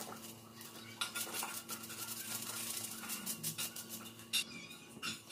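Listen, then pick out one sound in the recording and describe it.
Powder pours from a packet into a plastic container with a soft hiss.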